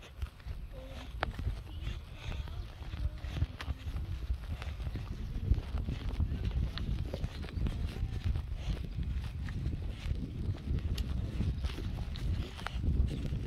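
Footsteps tread on grass.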